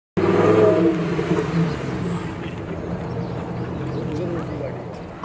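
A sports car engine roars loudly as the car drifts.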